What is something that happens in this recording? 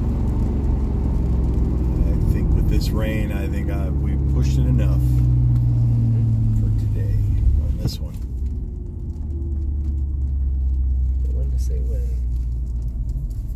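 Rain patters on a car's windshield.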